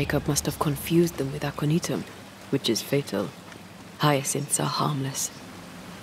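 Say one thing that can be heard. A waterfall rushes nearby.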